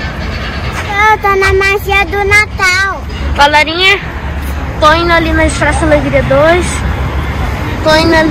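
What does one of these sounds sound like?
A little girl talks close by in a high voice.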